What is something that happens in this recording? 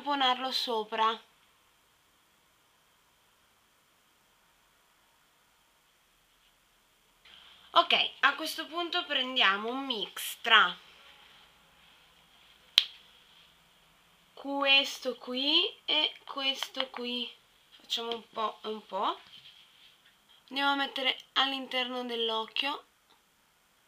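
A young woman talks calmly and close to a microphone, in bursts with pauses.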